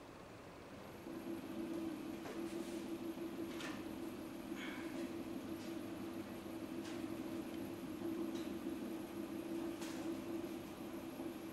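A potter's wheel hums steadily.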